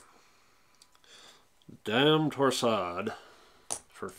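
A game token clicks softly on a tabletop.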